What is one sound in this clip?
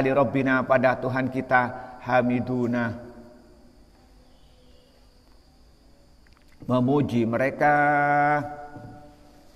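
A middle-aged man chants a reading aloud in a melodic voice, echoing in a large hall.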